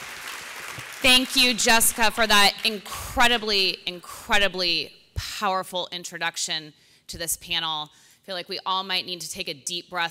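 A younger woman speaks calmly through a microphone and loudspeakers in a large hall.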